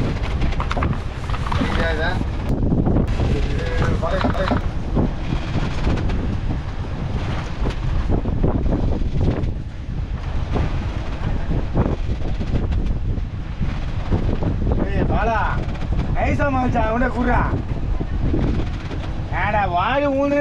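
Wind blows steadily outdoors over open water.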